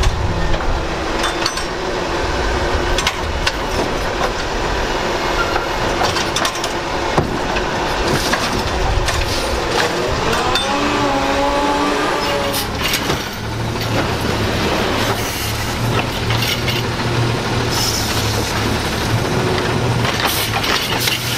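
A hydraulic lifting arm whines as it raises and lowers a bin.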